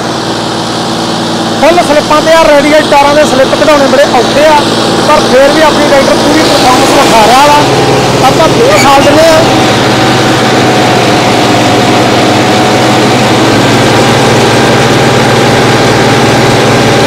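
A tractor engine runs with a steady, low rumble.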